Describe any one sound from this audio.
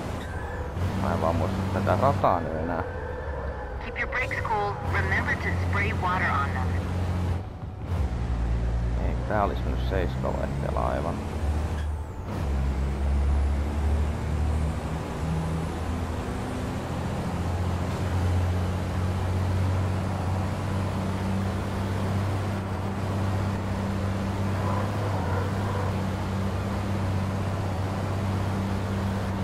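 Tyres hum on a racetrack.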